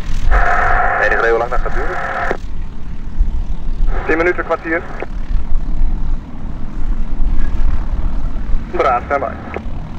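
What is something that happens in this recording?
A small propeller plane's engine hums steadily as the plane taxis nearby.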